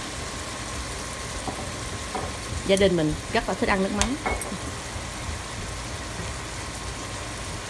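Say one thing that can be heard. Ground meat sizzles steadily in a hot frying pan.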